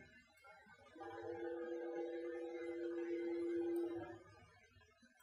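The electric motors of a motion control robot arm whine as it moves.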